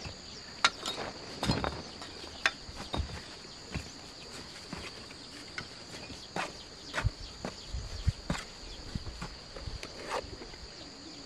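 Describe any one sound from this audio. Bricks clack and knock together as they are handled.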